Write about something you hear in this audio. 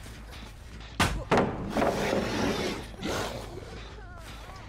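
A wooden board cracks and splinters as it is smashed.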